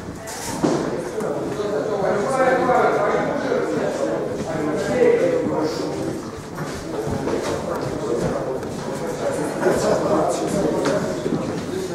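Several boys and young men talk and chatter nearby in a room with some echo.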